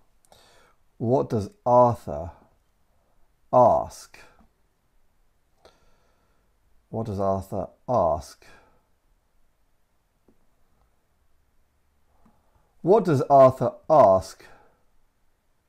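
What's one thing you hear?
A man speaks slowly and clearly into a close microphone, in short phrases with pauses.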